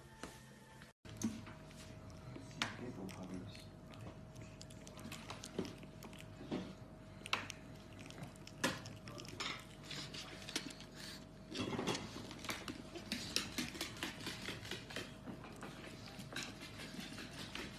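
Puppies growl and yip softly.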